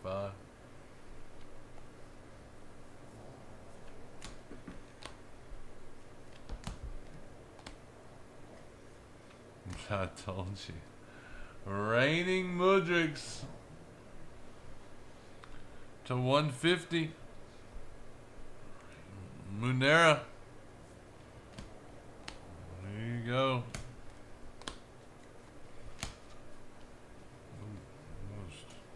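Trading cards rustle and tick as they are shuffled by hand.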